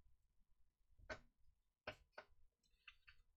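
Small plastic parts click and tap under someone's fingers.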